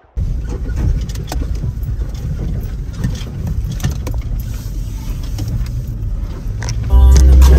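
A vehicle engine rumbles low while driving slowly.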